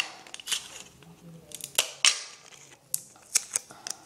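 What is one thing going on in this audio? A plastic cup clicks and taps on a hard counter.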